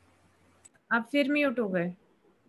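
A woman speaks over an online call.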